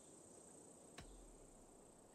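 A short interface click sounds as a menu choice changes.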